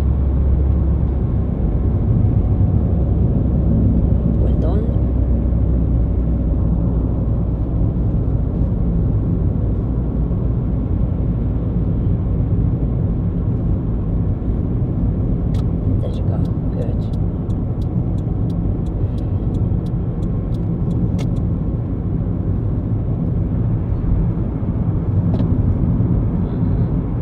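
A car engine hums steadily at highway speed.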